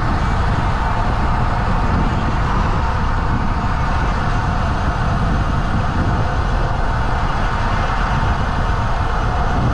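Wind rushes loudly over the microphone.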